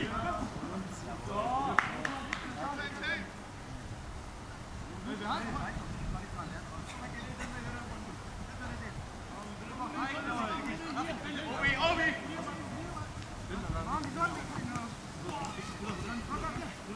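Young men shout to each other outdoors.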